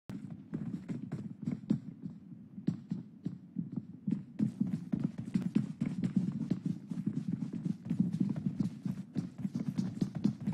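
Footsteps run quickly on hard ground.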